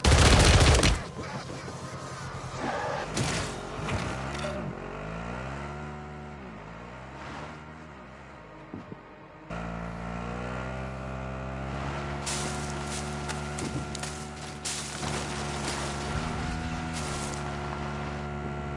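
A motorbike engine hums and revs, rising and falling in pitch.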